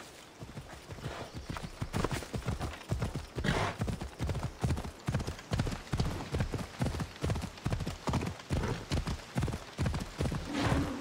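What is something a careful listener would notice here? A horse gallops with fast, heavy hoofbeats.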